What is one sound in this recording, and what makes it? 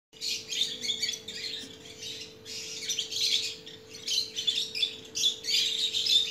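Young birds chirp and squeak in high, rasping bursts close by.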